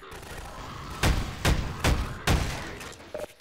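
A wooden crate splinters and breaks under heavy blows.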